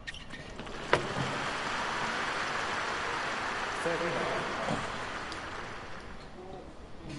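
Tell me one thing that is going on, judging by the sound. A crowd applauds and cheers loudly.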